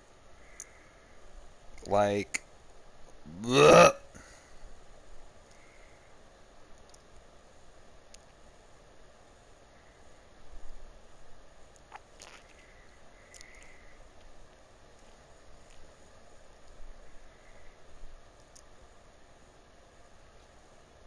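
A rifle clicks and rattles as it is handled.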